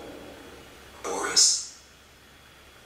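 A young man lets out a sharp, rising shriek close to a microphone.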